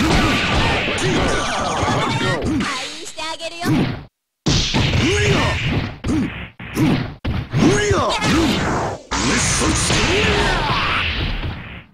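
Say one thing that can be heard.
Punches and kicks land with sharp smacking thuds.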